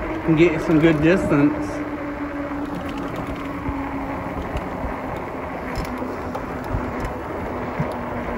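Bike tyres roll over rough asphalt.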